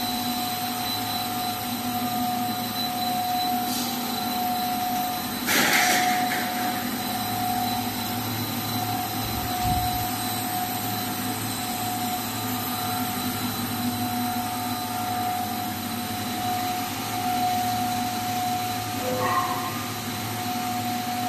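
Industrial machines hum and whir steadily.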